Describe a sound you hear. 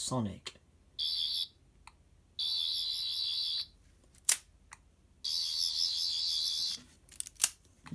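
A toy sonic device buzzes with a high electronic whirr in bursts.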